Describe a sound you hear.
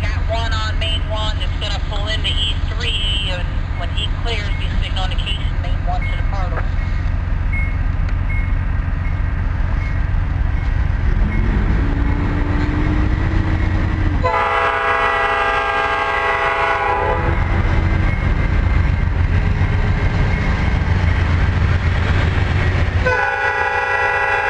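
A train rumbles closer along the tracks.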